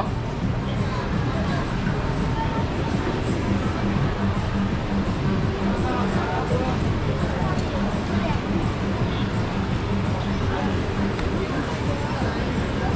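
Young men chat nearby.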